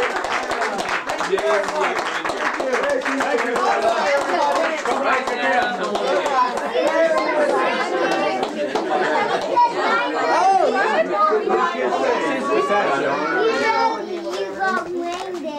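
Adults laugh and chatter in a room.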